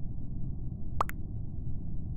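A short pop sounds as a chat message arrives.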